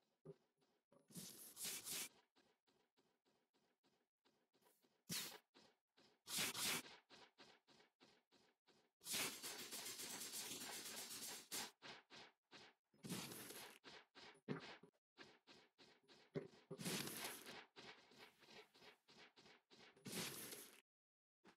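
A magical energy blast whooshes in repeated bursts.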